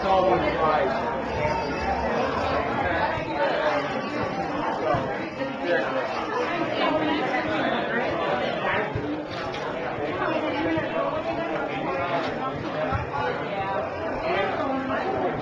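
A crowd of men and women chatters in the background.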